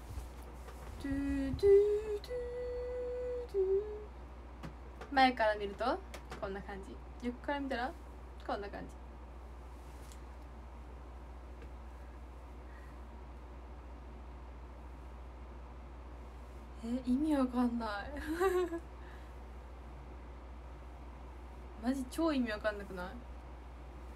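A young woman talks softly and close by, in short bursts with pauses.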